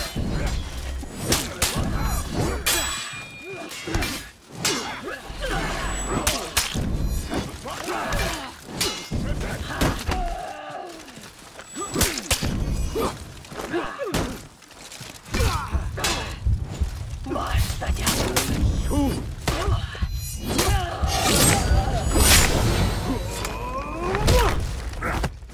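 Swords clash and clang in quick bursts.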